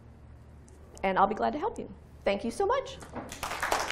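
A woman speaks with animation into a microphone.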